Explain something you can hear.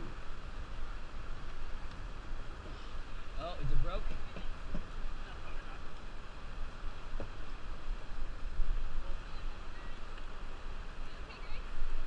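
River water rushes and splashes around a raft.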